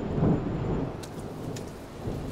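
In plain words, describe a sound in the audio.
Footsteps and a cane tap on wet pavement.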